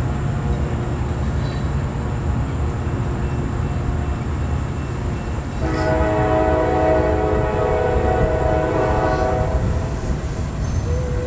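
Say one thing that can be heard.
A freight train rumbles steadily past nearby.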